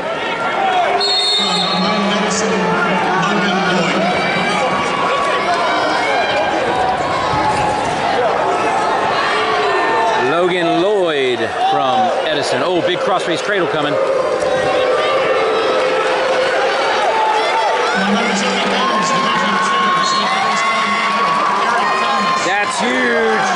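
A large crowd shouts and cheers in an echoing hall.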